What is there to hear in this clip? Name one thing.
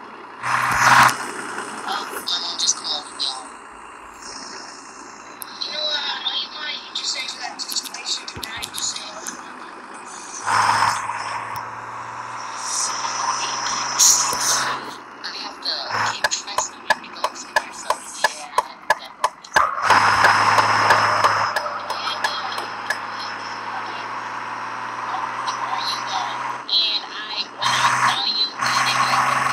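A simulated diesel school bus engine hums as the bus drives.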